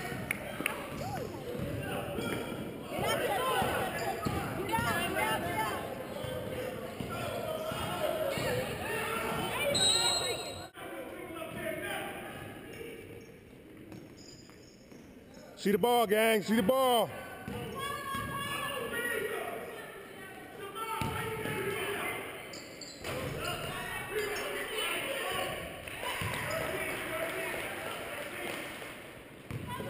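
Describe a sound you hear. Spectators talk and shout in a large echoing gym.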